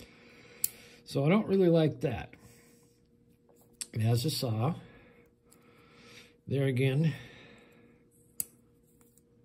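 A metal multi-tool clicks and snaps as it is opened and folded.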